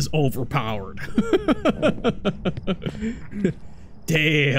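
A man laughs close to a microphone.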